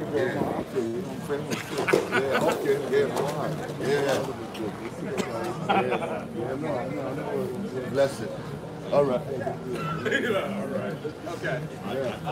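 Men talk with animation close by.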